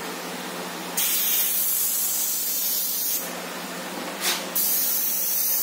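An airbrush hisses in short bursts of spraying.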